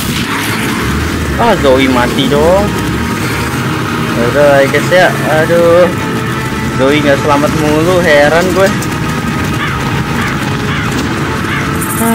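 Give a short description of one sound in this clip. A heavy truck engine rumbles as the truck drives off.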